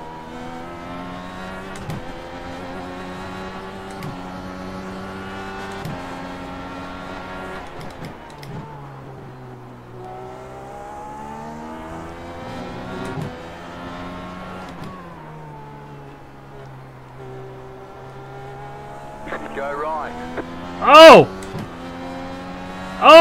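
A racing car engine whines loudly, rising in pitch and dropping with each gear change.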